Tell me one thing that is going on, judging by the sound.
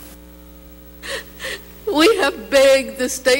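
An elderly woman speaks emotionally into a microphone.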